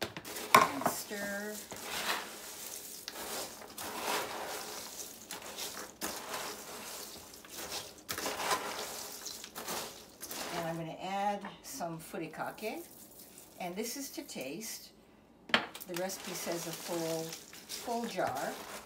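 A spoon stirs and tosses dry crunchy snack mix in a plastic bowl, rustling and rattling.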